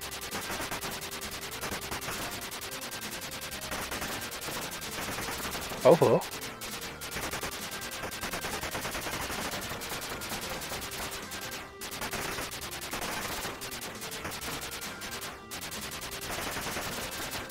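Rapid electronic shots fire again and again.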